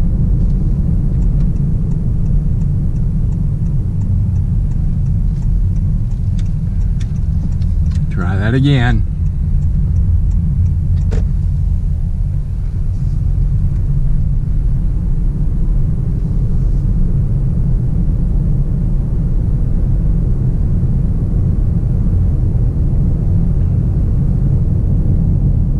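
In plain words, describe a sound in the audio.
Tyres roll over the road surface.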